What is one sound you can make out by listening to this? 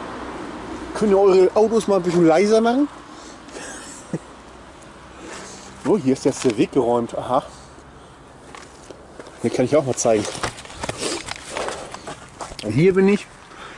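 A man speaks close by in short bursts, outdoors.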